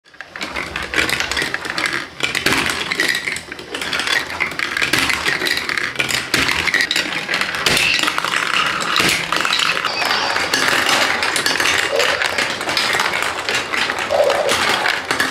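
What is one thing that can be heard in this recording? Plastic marbles roll and clatter down a plastic track.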